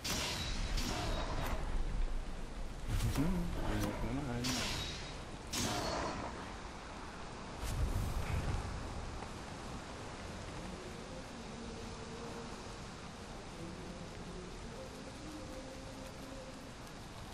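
Heavy rain falls.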